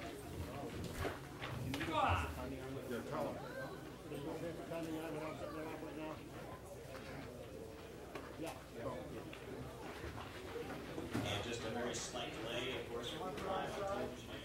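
A crowd of men talks and murmurs close by.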